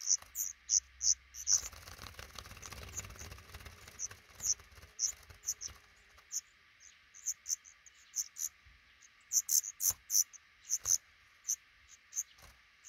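Baby birds chirp in short, high peeps close by.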